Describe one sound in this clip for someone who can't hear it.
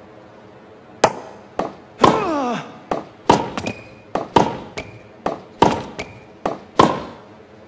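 A tennis ball is struck with a racket again and again.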